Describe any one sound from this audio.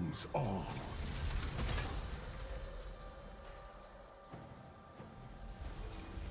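Fantasy spell effects whoosh and crackle in a video game fight.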